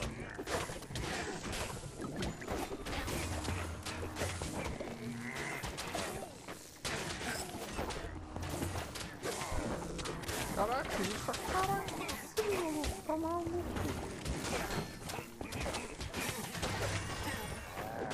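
Game combat sounds of fiery explosions and hits crackle rapidly.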